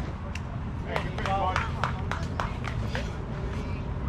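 Young players shout and cheer from a distance.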